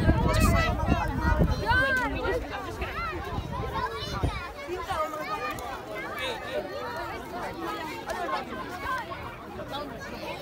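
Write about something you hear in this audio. A crowd of children and adults chatter and call out close by, outdoors.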